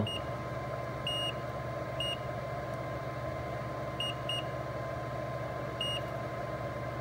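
A multimeter beeps in short, sharp bursts.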